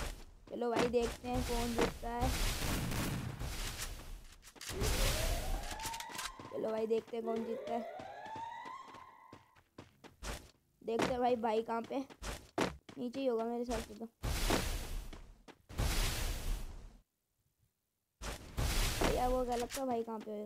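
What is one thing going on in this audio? Ice walls burst up with a rushing whoosh.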